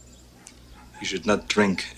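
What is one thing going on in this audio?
A man speaks quietly.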